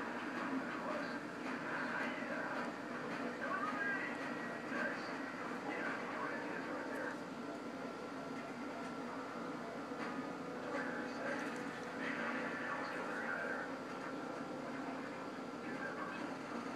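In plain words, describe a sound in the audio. A small dog growls playfully up close.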